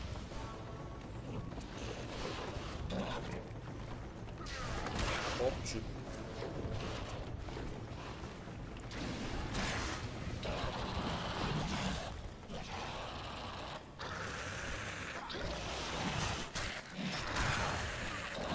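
Steel blades clash and strike in a fight.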